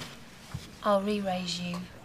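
Playing cards riffle as they are shuffled.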